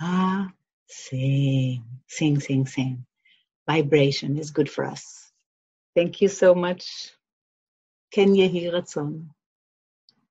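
A woman speaks warmly and with animation, close to a microphone.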